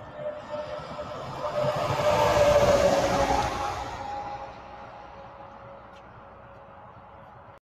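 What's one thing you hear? Traffic rushes past on a nearby highway, swelling loud and then fading away.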